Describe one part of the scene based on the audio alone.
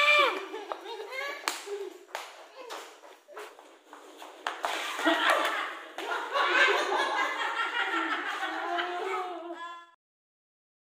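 Young boys shout and laugh playfully nearby.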